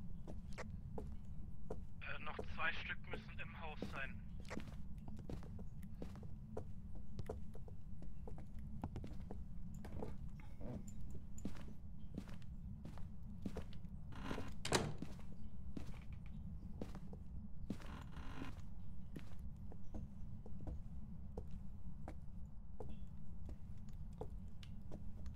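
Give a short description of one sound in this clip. Footsteps tread steadily across a floor.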